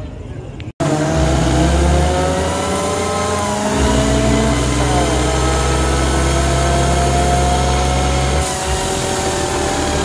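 Tyres squeal as they spin on the pavement.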